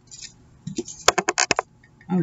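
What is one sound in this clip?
Paper is creased sharply as it is folded.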